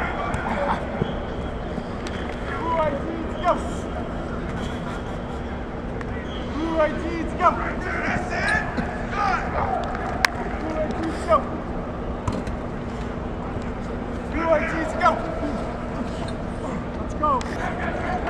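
Football players thud into a padded tackling dummy.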